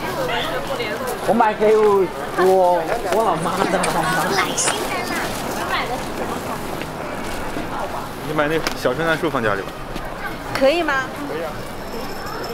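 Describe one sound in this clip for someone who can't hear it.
A crowd of men and women chat nearby outdoors.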